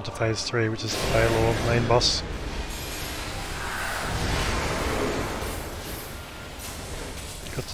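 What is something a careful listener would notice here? Magic spells blast and roar in a fight.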